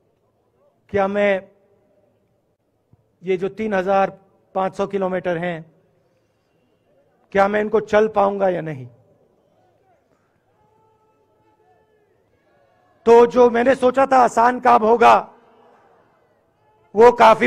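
A man speaks slowly into a microphone over a loudspeaker, with pauses between phrases.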